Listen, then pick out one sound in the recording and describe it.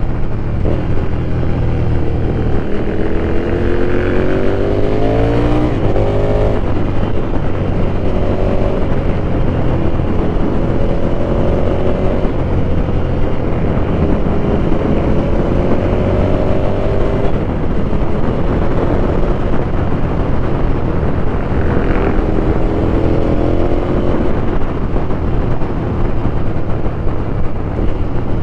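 A motorcycle engine drones steadily, rising and falling in pitch as it revs through the gears.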